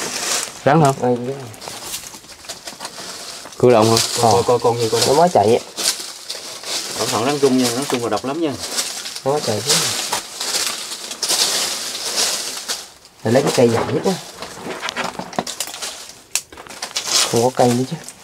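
Dry leaves rustle and crackle as a stick pokes through them.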